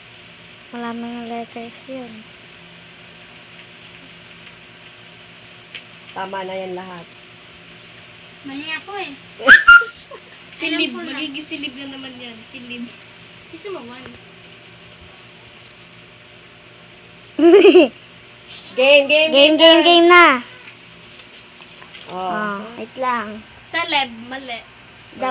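A young girl speaks nearby, now and then.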